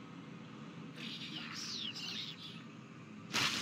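Winged creatures shriek and screech.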